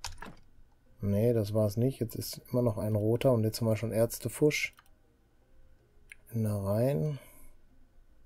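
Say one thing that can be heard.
A middle-aged man talks calmly into a close microphone.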